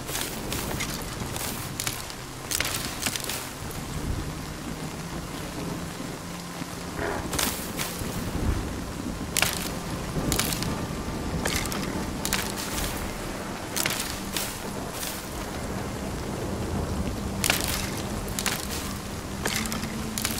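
Plants rustle and snap as they are picked.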